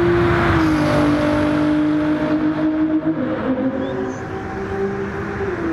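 A sports car engine roars at high revs as the car speeds past.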